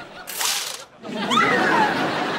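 A young woman gasps loudly in surprise.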